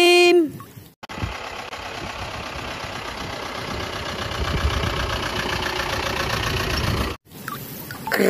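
A van's engine idles nearby.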